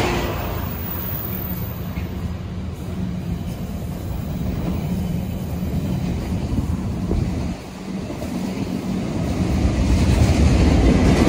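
A long freight train rumbles past close by with a steady clatter of wheels on rails.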